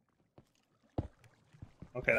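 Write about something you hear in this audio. A stone block is set down with a dull thud.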